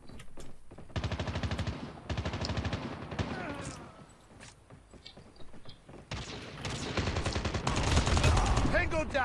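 Rapid bursts of automatic rifle fire crackle.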